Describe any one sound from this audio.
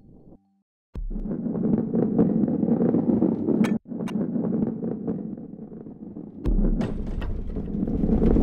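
Heavy balls roll and rumble along wooden and stone tracks.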